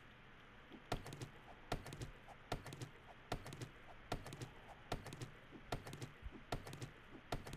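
An axe chops into wood with repeated thuds.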